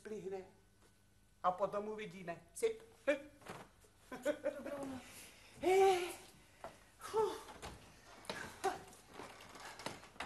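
A middle-aged woman talks with animation close by.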